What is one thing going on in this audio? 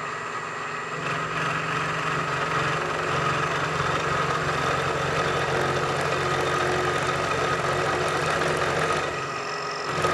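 A milling cutter grinds into metal with a rough, whining rasp.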